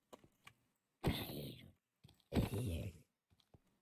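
A zombie in a video game grunts in pain as it is struck.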